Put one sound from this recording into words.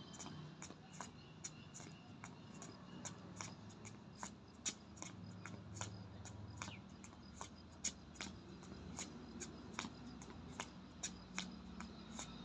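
Sneakers tap and scuff on a stone pavement in a quick rhythm.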